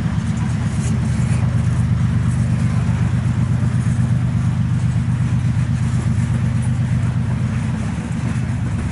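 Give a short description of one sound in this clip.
A freight train rumbles past steadily, wheels clacking on the rails.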